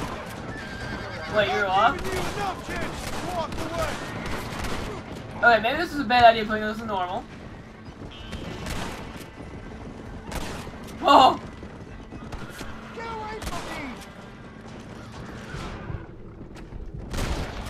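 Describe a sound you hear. Horse hooves gallop on a dirt road.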